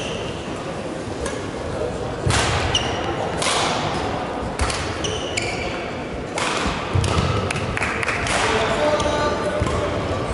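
Rackets hit a shuttlecock back and forth with sharp pops.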